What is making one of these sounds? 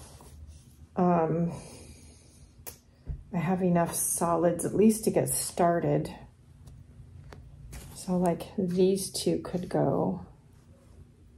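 An older woman talks calmly and close by.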